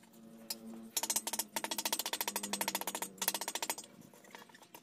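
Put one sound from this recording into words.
A wrench rasps and clicks rapidly as it turns a nut.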